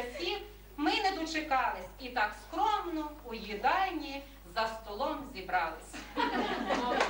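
A woman recites with feeling nearby.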